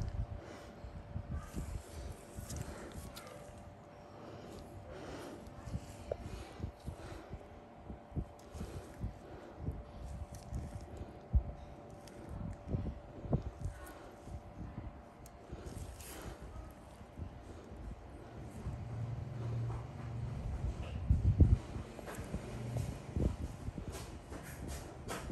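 Gloved fingers rub and squeeze against skin with soft rubbery sounds.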